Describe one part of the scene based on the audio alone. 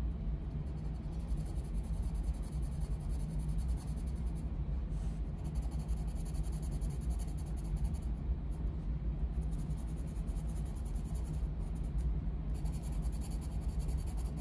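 A coloured pencil scratches steadily across paper in short bursts.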